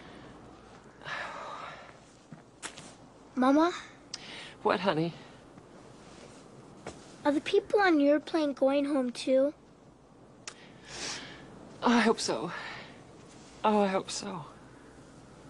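A woman speaks softly and warmly nearby.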